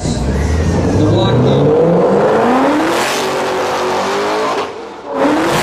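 A sports car engine revs hard and roars as the car accelerates.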